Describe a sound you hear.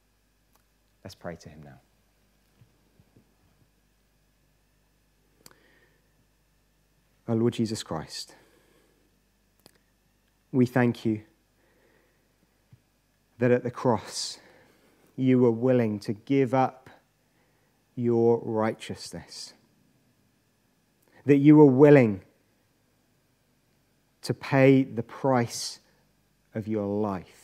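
A young man speaks slowly and calmly into a microphone, with pauses between phrases.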